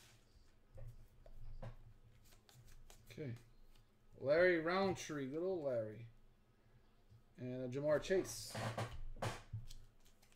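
Trading cards slide and flick against each other in hands.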